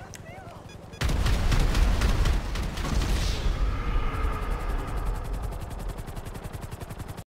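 A helicopter's rotor thumps close by.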